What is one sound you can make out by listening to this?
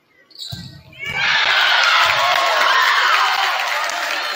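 A crowd cheers loudly in an echoing hall.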